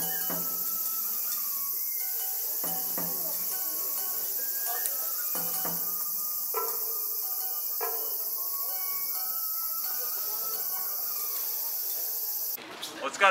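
A group of men chant and call out together outdoors.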